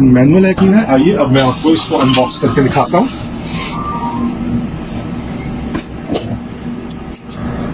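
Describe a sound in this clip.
A hand rubs against a cardboard box.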